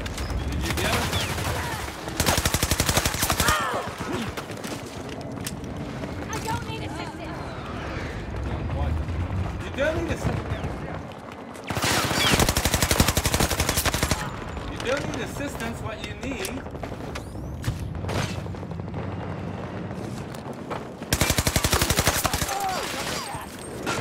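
A rifle fires in rapid bursts of loud shots.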